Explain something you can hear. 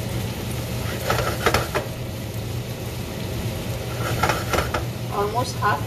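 A spoon scrapes and clinks against a pot.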